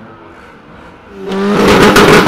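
Car engines idle.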